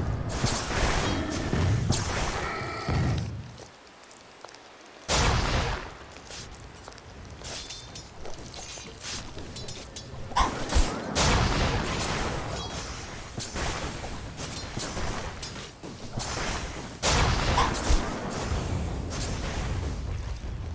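Game spells burst and crackle in a fight.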